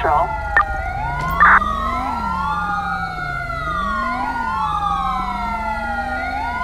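Police sirens wail, rising and falling, overlapping one another.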